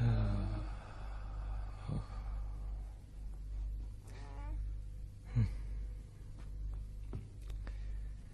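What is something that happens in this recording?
A middle-aged man speaks softly and tenderly, close by.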